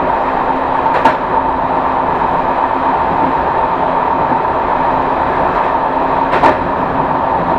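Train wheels clack over rail joints.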